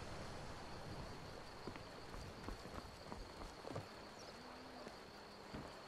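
Footsteps thud softly on wooden boards.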